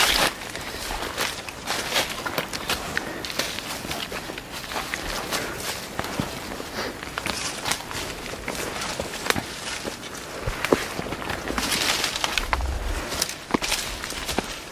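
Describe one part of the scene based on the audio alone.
Footsteps crunch and rustle through dry leaves and undergrowth.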